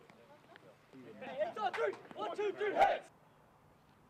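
A group of young men cheer and shout together loudly outdoors.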